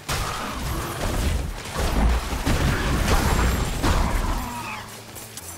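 Blows and magic impacts thud and crash against a monster.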